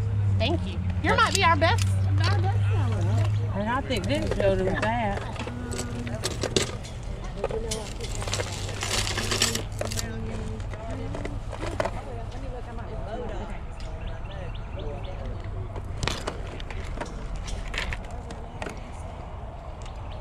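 Metal trinkets clink and rattle as hands handle them.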